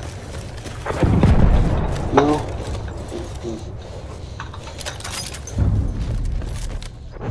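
Explosions boom in the distance with a deep rumble.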